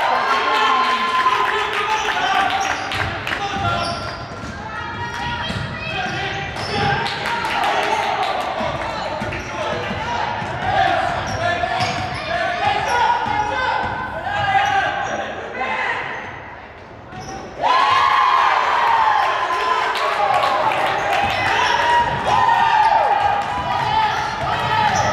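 Spectators murmur and call out in the hall.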